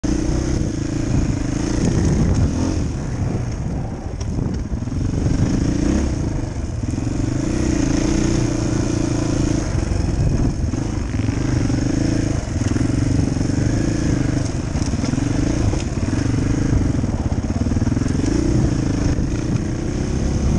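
A dirt bike engine revs up and down while riding along a dirt trail.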